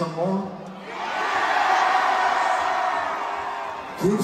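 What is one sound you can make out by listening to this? A large crowd cheers and screams.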